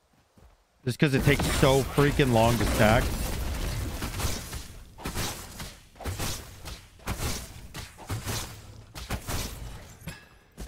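Sharp hits and impacts land in quick bursts.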